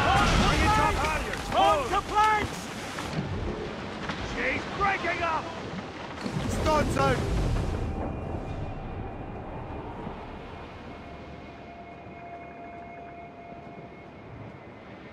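Waves rush and splash against a sailing ship's hull.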